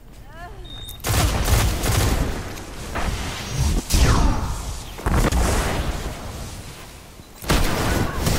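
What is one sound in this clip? Gunfire bursts in a video game firefight.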